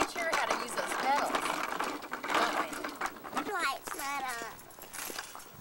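A woman talks warmly to small children nearby.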